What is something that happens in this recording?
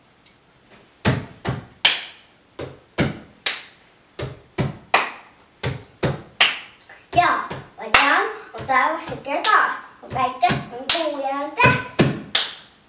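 A young boy raps loudly and rhythmically nearby.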